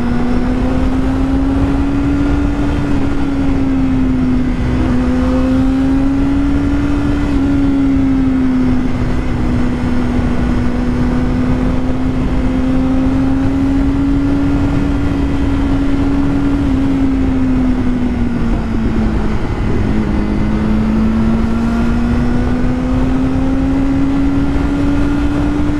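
A motorcycle engine hums steadily up close, its pitch rising and falling gently.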